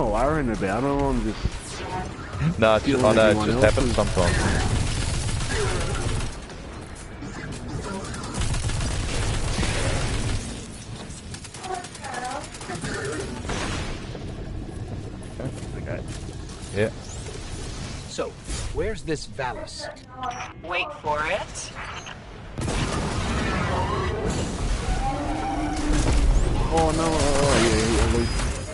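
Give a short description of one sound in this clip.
Gunfire and energy blasts crack and boom in quick bursts.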